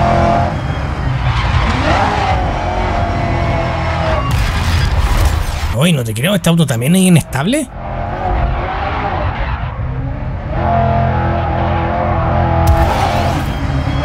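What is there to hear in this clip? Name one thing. A racing car engine roars and revs hard.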